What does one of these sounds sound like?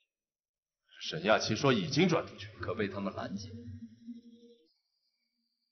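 A second man answers in a low, serious voice up close.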